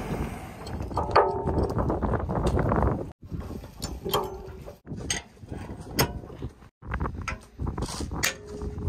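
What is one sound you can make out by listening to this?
Metal parts clink and knock against each other.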